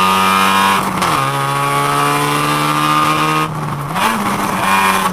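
A car engine roars loudly from close by inside the car, dropping in pitch and picking back up as the gears change.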